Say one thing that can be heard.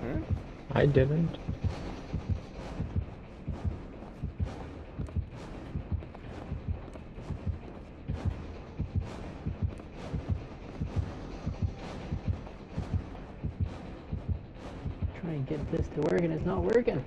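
Footsteps thud steadily on creaky wooden floorboards.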